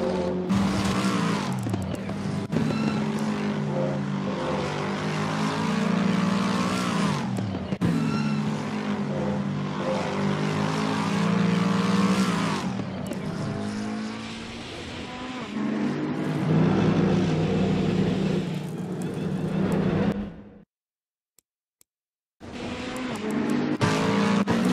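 A racing car engine roars loudly, its pitch climbing and dropping sharply with each gear change.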